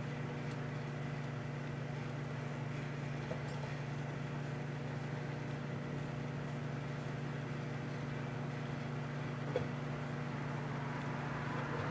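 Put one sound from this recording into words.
A microwave oven hums steadily while it runs.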